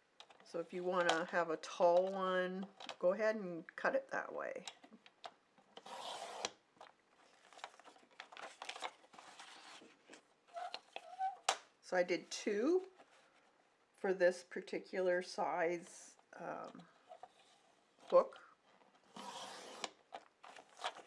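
A paper trimmer blade slides through card with a scraping swish.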